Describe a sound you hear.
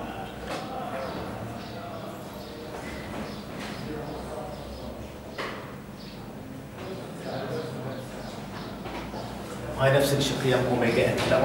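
A middle-aged man speaks calmly, as if teaching.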